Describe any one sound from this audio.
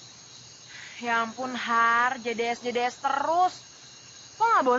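A young woman speaks anxiously, close by.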